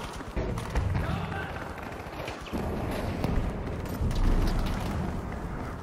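Explosions rumble deeply.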